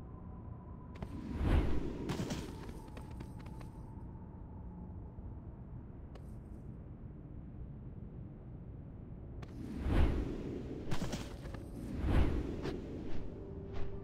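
Whooshing, thudding game sound effects play in short bursts.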